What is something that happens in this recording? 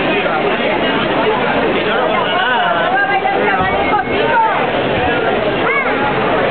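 A crowd of men and women chatter at once.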